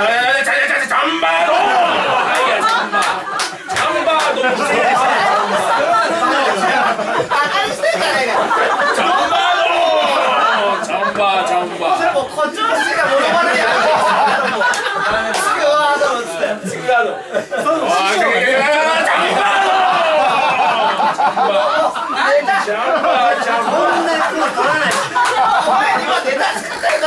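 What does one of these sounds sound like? Several men talk over each other with animation, close by.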